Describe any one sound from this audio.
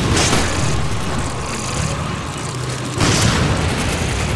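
A handgun fires sharp, loud shots.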